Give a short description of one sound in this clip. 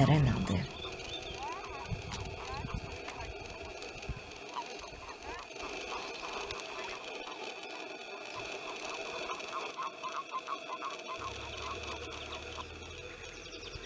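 Frogs croak in soft, rattling purrs.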